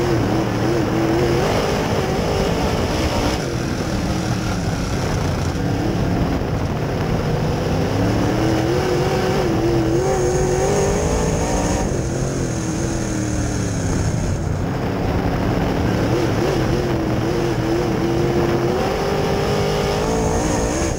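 Tyres rumble and spray over loose dirt.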